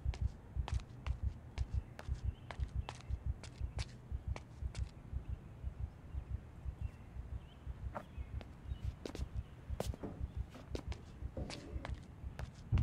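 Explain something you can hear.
Footsteps tap steadily on pavement.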